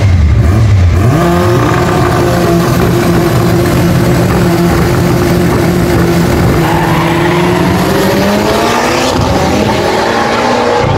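Car engines roar and climb in pitch as cars speed away down the track.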